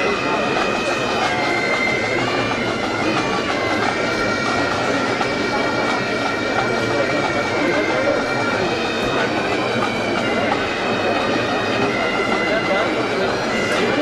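Bagpipes play a steady, droning marching tune.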